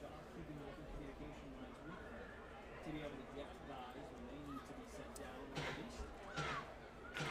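A crowd murmurs and chatters in the stands.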